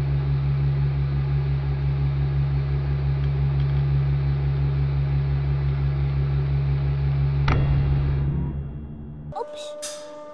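A hydraulic press hums loudly and steadily.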